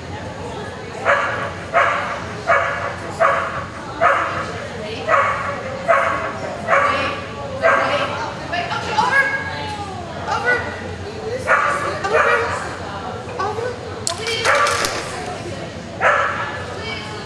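A dog barks sharply again and again in an echoing hall.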